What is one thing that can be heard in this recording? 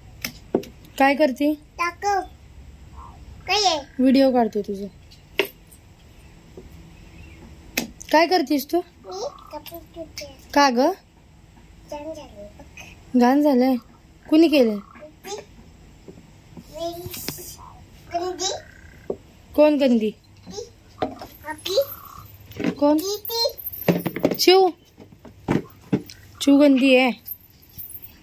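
A young girl speaks up close in a high, chirpy voice.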